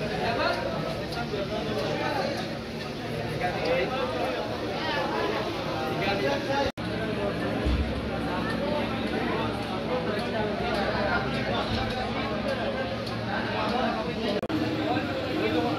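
A crowd of men chatter in a busy room with echo.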